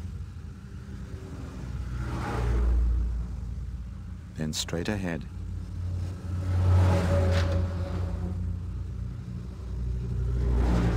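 A small car engine hums as it drives along.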